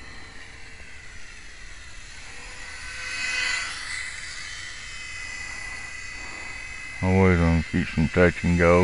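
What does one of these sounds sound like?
A model airplane's small motor whines overhead, growing louder as it passes close and then fading.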